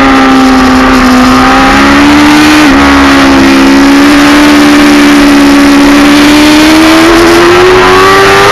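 Wind rushes loudly past a fast-moving motorcycle.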